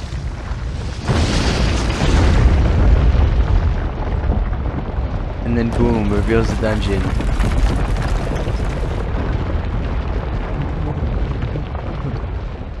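Rock rumbles and crumbles as a mountain collapses.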